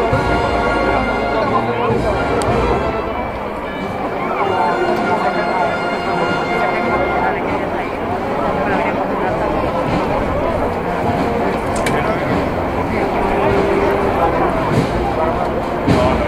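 A large crowd murmurs and chatters outdoors.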